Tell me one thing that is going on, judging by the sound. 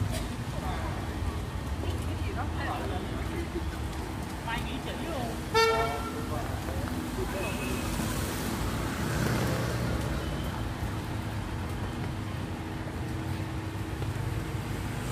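Rain patters steadily on a wet street outdoors.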